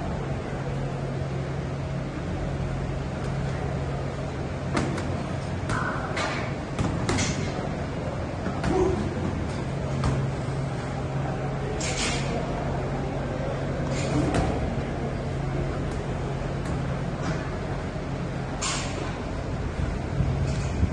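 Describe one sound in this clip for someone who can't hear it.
Bare feet shuffle and thump on a hard floor.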